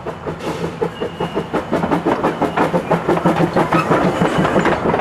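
A steam locomotive chuffs rhythmically as it passes close by.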